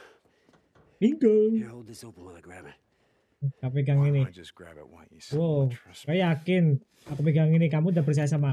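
A man speaks urgently in a low voice.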